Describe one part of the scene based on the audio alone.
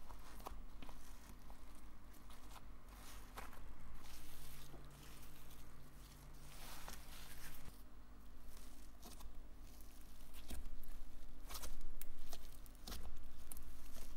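Soft slime squishes and crackles as fingers press and squeeze it.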